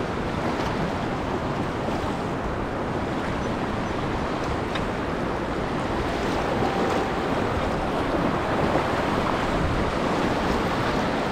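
River rapids rush and roar close by, growing louder.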